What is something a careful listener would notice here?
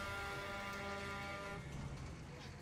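A bus engine hums loudly with a steady whine.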